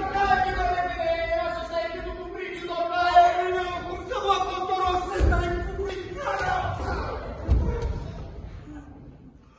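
A man cries out in distress.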